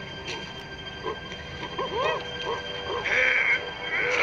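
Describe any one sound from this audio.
A gorilla gives a worried, low vocal murmur close by.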